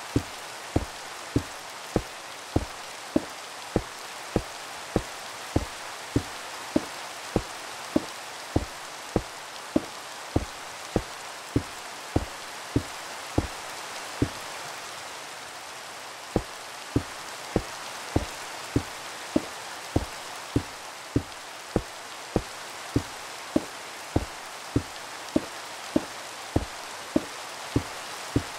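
Stone blocks are placed one after another with quick, regular dull thuds.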